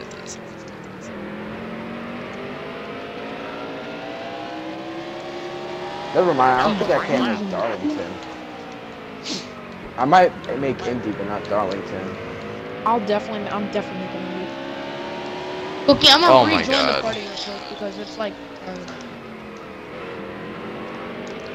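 A race car engine roars at high revs, its pitch rising and falling through the gears.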